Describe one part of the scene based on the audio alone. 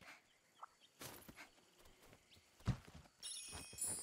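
Sharp weapon strikes hit a creature.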